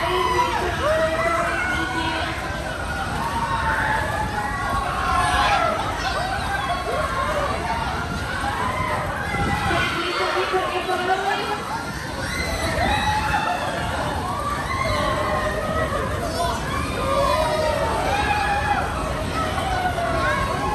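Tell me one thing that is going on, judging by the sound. A fairground ride rumbles and whooshes as it spins.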